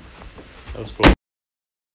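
A laptop lid snaps shut.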